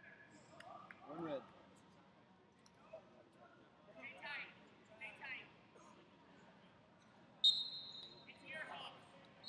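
Men shout loudly in a large echoing hall.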